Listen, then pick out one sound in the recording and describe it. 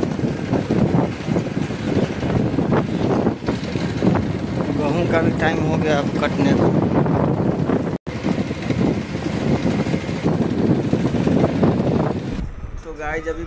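A motorcycle engine rumbles as it rides along.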